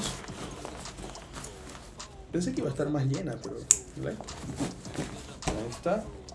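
A backpack's fabric rustles as it is handled.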